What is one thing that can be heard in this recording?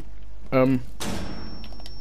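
A single gunshot cracks and rings out.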